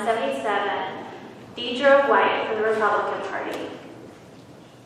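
A woman speaks into a microphone over loudspeakers in a large echoing room.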